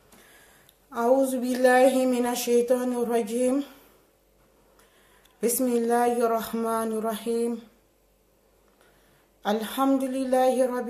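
A woman recites in a melodic chant close by, in phrases separated by pauses.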